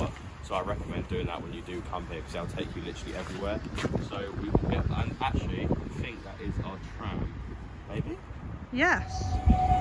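A young man speaks calmly outdoors, close to the microphone.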